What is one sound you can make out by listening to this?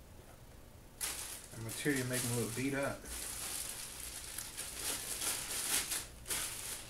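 Paper and plastic rustle as a shoe is handled.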